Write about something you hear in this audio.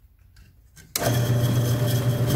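A drill press motor starts and hums steadily.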